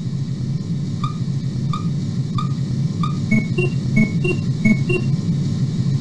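Electronic beeps chirp in a quick series.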